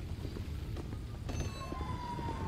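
A glass door is pushed open.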